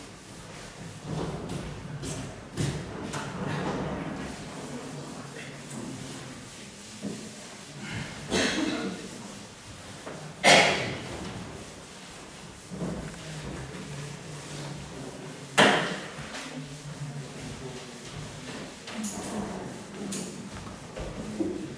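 A felt eraser rubs and swishes across a chalkboard.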